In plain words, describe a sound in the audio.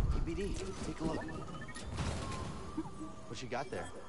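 A metal crate lid creaks and clanks open.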